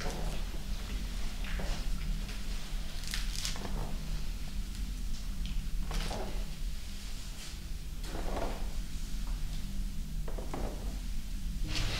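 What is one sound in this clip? Footsteps walk slowly across a wooden floor.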